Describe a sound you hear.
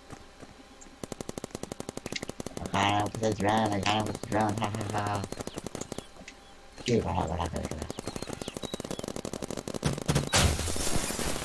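A video game gun fires rapid shots.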